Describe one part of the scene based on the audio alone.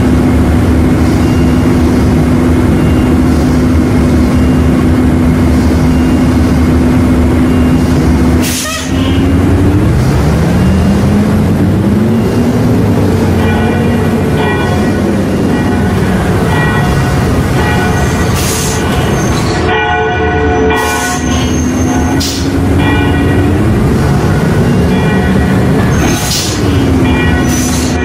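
A bus engine hums steadily and rises and falls in pitch as the bus speeds up and slows.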